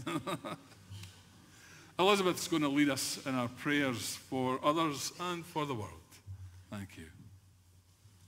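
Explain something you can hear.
A middle-aged man speaks calmly through a microphone in a large echoing room.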